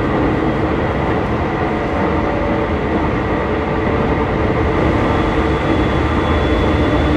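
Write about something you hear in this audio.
A train car rumbles and hums steadily as it runs along the track.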